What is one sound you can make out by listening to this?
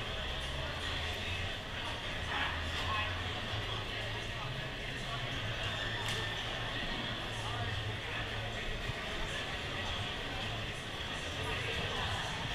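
A large indoor crowd murmurs and chatters in an echoing hall.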